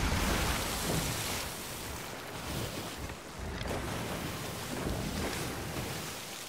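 Waves wash and splash against a ship's hull.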